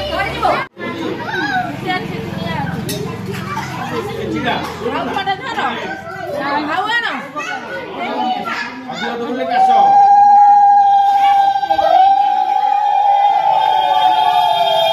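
Several women chant and ululate loudly nearby.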